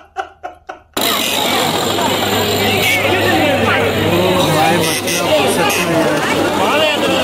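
A crowd of men and women chatters loudly all around, close by.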